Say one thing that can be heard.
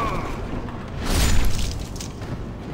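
A blade swings and strikes with a heavy thud.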